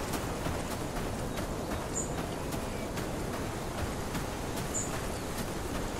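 Footsteps swish through tall dry grass.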